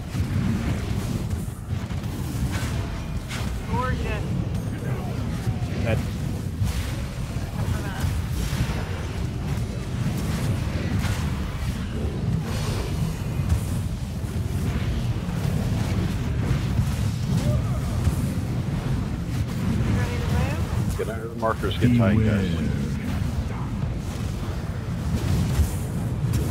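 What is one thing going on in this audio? Battle sound effects of spells and blasts rumble and crackle throughout.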